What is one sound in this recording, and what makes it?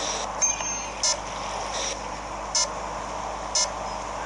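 A video game's warning beep sounds several times in short bursts.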